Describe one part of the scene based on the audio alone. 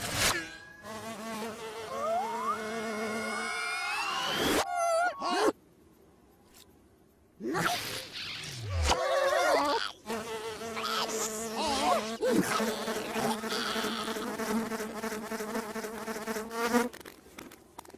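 A cartoon fly buzzes steadily.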